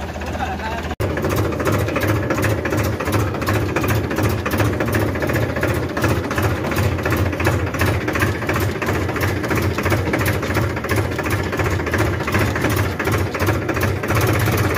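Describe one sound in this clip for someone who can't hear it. A tractor engine chugs loudly and close up with a fast, even beat.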